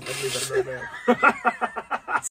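Several men laugh loudly together.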